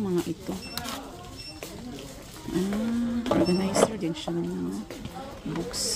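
A wooden box slides and knocks softly.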